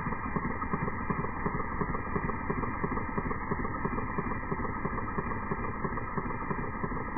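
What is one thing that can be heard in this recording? Small plastic gears click and rattle rapidly as a hand crank turns.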